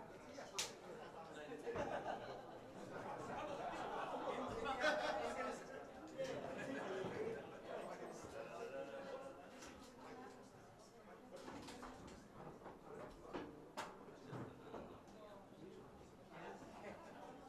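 Drums play a beat.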